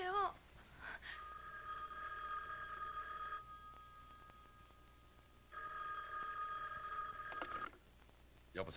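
A telephone rings loudly in repeated bursts.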